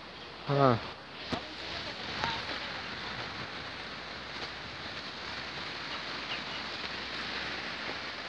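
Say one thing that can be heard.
Footsteps swish through tall grass on a dirt path outdoors.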